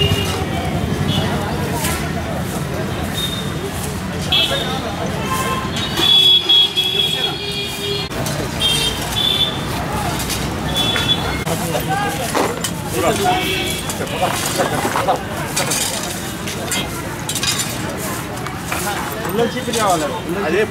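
Several men talk in the background outdoors.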